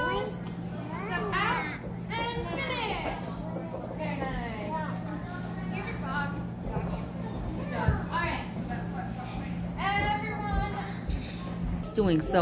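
Young girls talk and call out in high voices.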